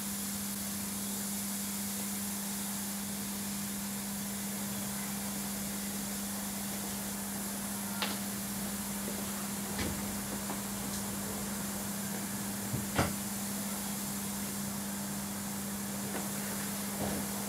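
An electrical hum drones steadily.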